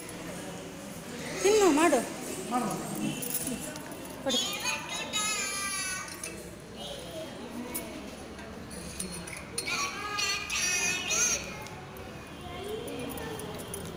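A young child talks on a stage, heard from a distance.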